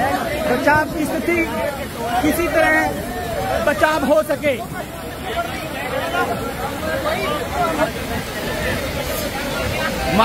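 Several men talk over one another outdoors.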